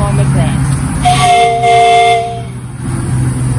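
A steam whistle blows for about a second and a half.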